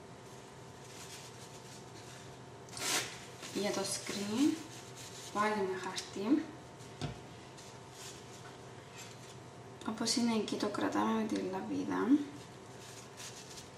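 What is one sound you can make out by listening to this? Plastic sheeting rustles and crinkles.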